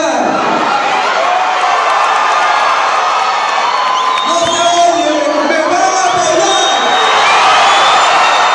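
A man speaks loudly into a microphone over a loudspeaker, echoing outdoors.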